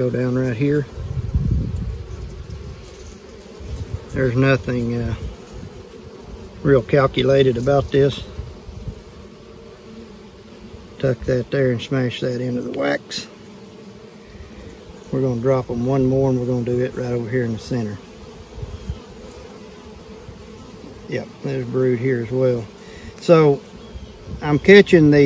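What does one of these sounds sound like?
Bees buzz steadily up close.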